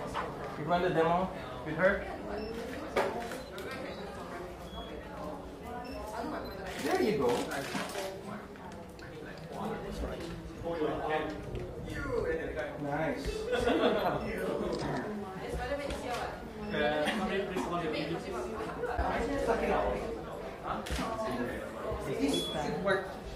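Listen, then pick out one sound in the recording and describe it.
Men and women talk nearby.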